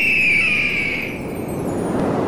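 An eagle screeches loudly.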